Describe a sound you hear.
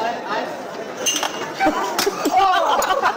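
Glass bottles clatter and smash.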